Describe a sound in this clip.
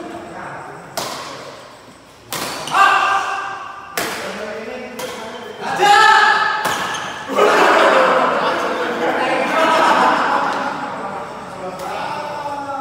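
Badminton rackets sharply strike a shuttlecock back and forth in an echoing hall.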